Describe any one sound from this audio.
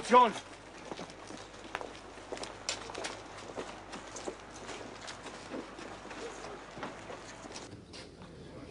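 Footsteps crunch on snowy ground.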